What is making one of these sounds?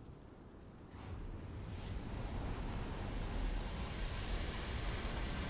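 Magic shimmers with a soft rising hum.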